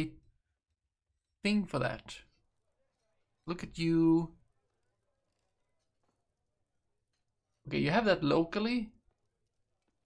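A young man talks calmly into a close microphone, in short bursts with pauses.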